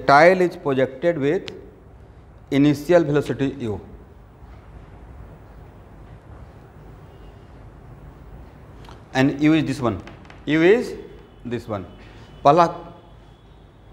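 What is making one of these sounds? A man speaks in bursts, explaining in a lecturing tone.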